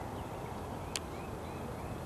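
A golf club strikes a ball once in the distance, outdoors.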